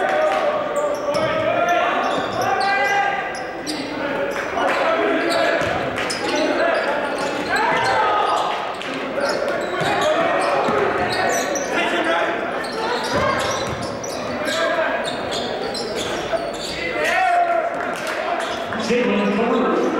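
Voices of a crowd and players echo through a large gym.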